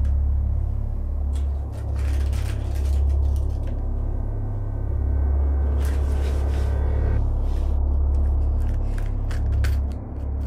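Items rustle and clatter as a man rummages through them.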